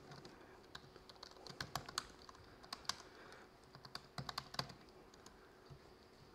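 Keys clatter as a man types on a laptop keyboard.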